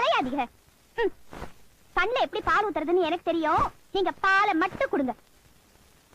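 A woman speaks loudly and with agitation.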